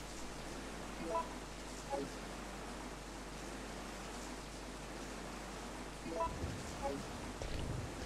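Short electronic menu beeps chime a few times.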